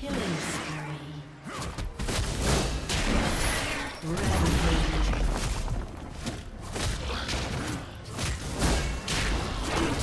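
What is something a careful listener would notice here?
Magic spells crackle and blast in a fast, chaotic fight.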